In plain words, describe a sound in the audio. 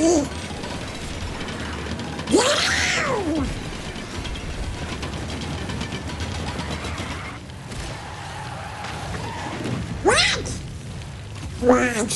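A racing kart engine roars steadily.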